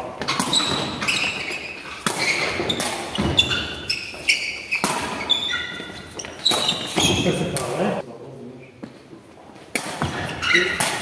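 A ball is struck with a dull thud in an echoing hall.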